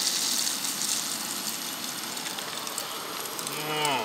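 Liquid pours and splashes into a small metal pot.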